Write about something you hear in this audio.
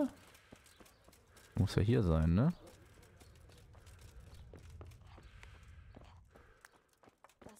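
Footsteps tread on wooden boards and dirt.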